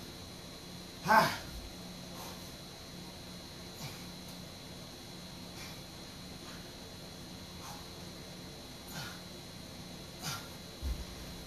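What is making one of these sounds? A man breathes out hard with effort during exercise.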